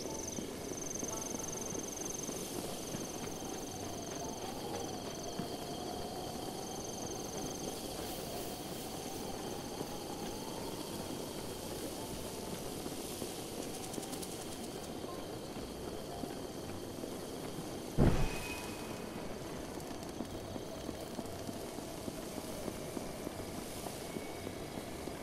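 Quick footsteps patter through grass.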